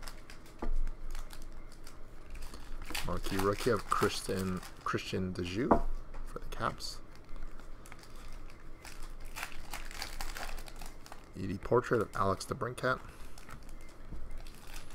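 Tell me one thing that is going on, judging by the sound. Trading cards rustle and slide in hands.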